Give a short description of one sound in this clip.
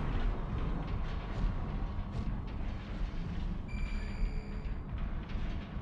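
Heavy mechanical footsteps thud.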